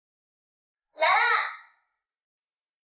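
A woman calls out briefly.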